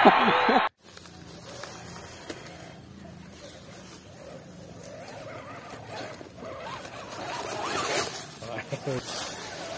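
A small electric motor whines, rising and falling in pitch.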